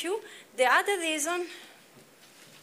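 A woman speaks briefly, as if lecturing.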